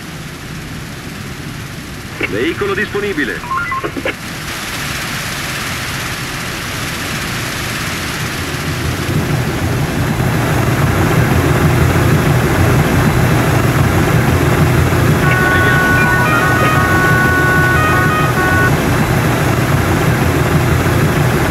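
Water gushes steadily from fire hoses.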